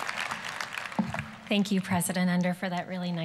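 A woman speaks calmly into a microphone, heard over loudspeakers in a large hall.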